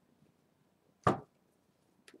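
A card is slapped down on a table.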